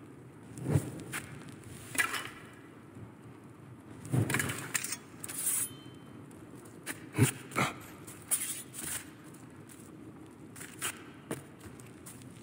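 Footsteps thud and scuff on stone as a figure jumps and lands.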